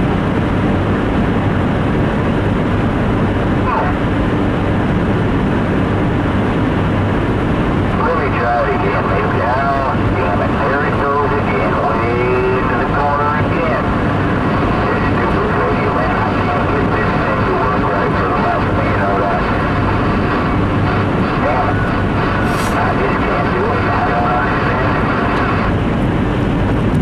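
Tyres hiss on a wet road surface.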